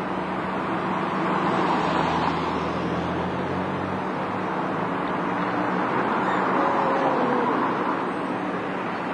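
A bus engine revs as the bus pulls away and passes close by.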